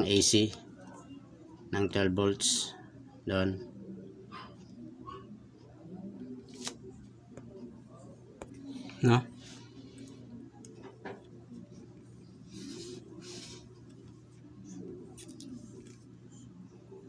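Fingers handle small wires and parts with light clicks and rustles.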